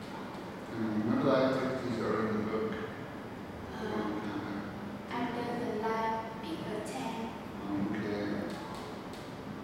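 A young woman speaks calmly and hesitantly nearby.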